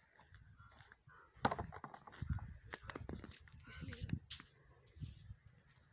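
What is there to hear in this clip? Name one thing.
A plastic basin thumps down onto the ground.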